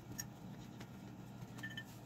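Fingers rustle in loose soil inside a glass jar.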